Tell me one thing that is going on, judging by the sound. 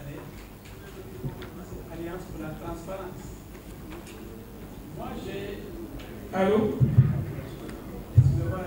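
A man speaks into a microphone with animation, heard through a loudspeaker in an echoing hall.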